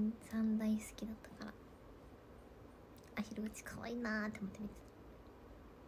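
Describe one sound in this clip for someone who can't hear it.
A young woman speaks softly and casually close to a microphone.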